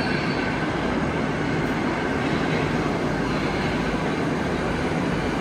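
A metro train rumbles and hums steadily along the platform in an echoing underground station.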